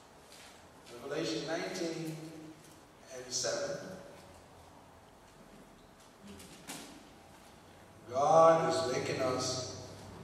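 A middle-aged man speaks slowly and solemnly into a microphone.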